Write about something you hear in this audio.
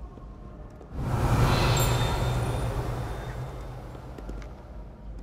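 A magic spell bursts with a loud crackling whoosh.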